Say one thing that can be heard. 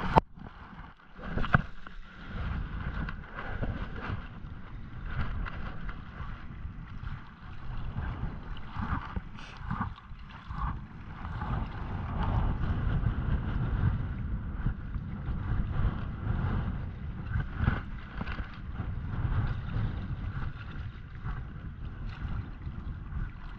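Small waves lap against rocks.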